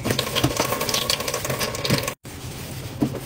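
Water runs and splashes into a metal sink.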